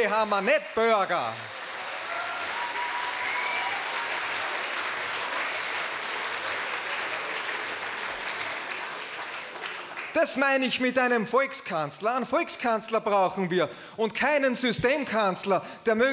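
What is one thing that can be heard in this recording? A middle-aged man speaks with animation into a microphone, heard over loudspeakers in a large hall.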